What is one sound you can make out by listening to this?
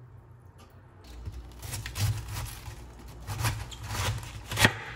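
Cabbage leaves crackle and snap as they are torn off.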